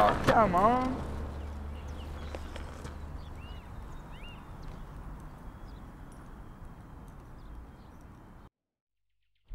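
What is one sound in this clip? Skateboard wheels roll along a concrete path and fade into the distance.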